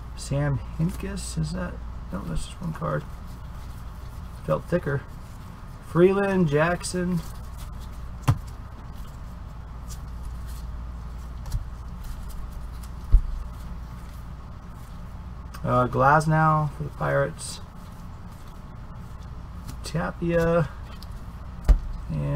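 Trading cards shuffle and slap against each other.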